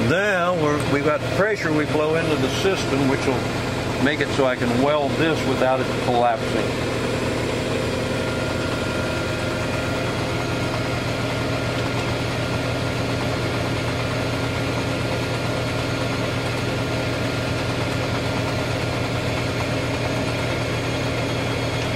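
A gas torch flame roars steadily.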